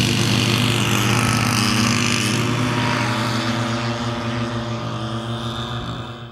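A propeller plane's engines drone loudly overhead and slowly fade as it flies away.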